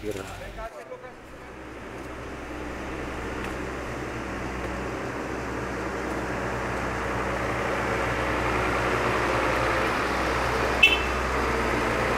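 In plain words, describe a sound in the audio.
A fire truck's engine rumbles steadily, growing louder.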